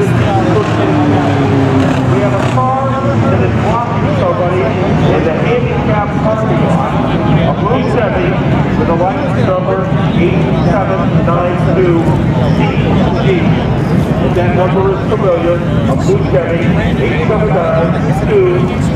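Mini stock race cars drone around an oval track.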